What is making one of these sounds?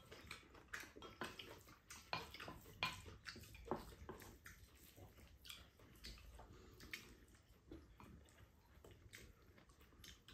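Spoons and chopsticks clink softly against bowls.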